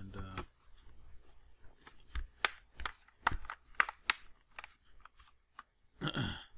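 Plastic clips click and snap as a tablet's back cover is pressed into place.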